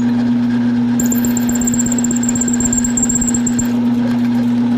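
A drill bit grinds into metal with a high whine.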